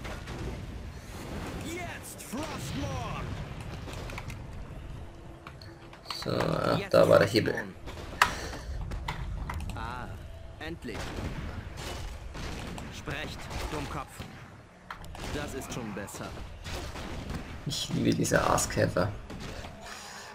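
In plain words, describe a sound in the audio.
Weapons clash in a battle.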